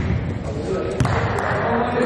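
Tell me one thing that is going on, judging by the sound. A volleyball is served with a sharp slap of the hand, echoing in a large hall.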